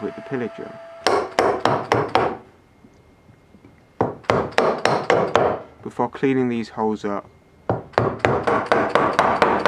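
A chisel chops into wood with sharp, repeated knocks.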